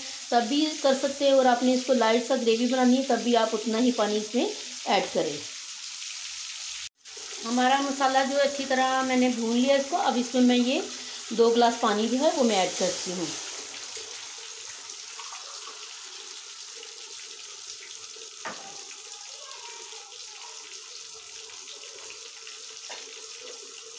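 Meatballs simmer and sizzle in bubbling sauce in a pan.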